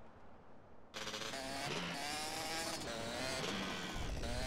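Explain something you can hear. A motorcycle engine starts up and revs.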